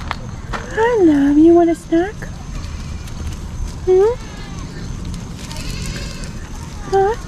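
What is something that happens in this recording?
Goats bleat loudly close by.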